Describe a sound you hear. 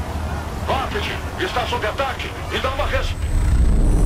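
A man speaks urgently over a crackling radio.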